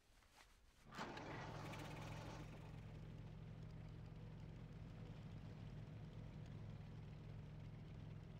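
A motorbike engine starts with a burst and then rumbles steadily.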